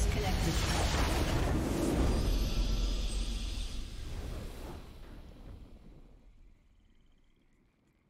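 A triumphant game fanfare plays and fades away.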